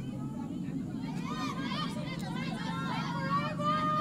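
A football is kicked across grass.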